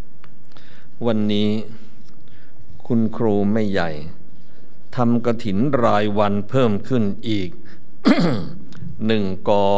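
An elderly man speaks calmly into a microphone.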